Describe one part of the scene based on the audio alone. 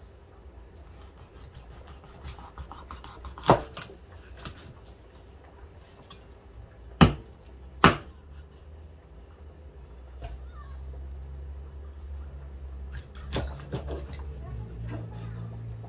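A knife taps sharply against a wooden cutting board.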